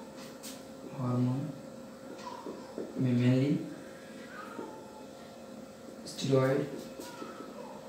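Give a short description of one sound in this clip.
A man speaks in short bursts nearby, calmly, as if explaining.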